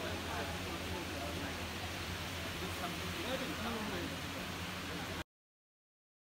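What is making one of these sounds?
A crowd of people chatter indistinctly.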